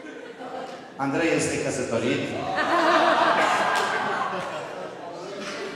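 Men laugh nearby.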